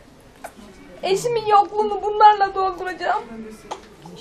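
A middle-aged woman sobs and wails loudly nearby.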